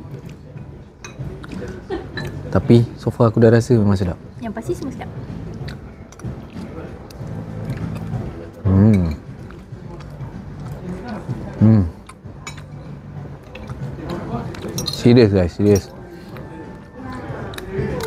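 Cutlery clinks against a plate.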